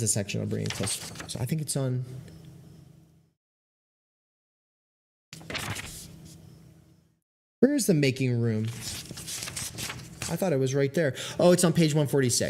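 A young man speaks calmly through a close microphone, with short pauses.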